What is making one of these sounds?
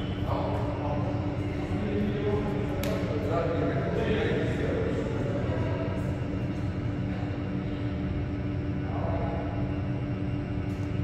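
People talk casually in a large echoing hall.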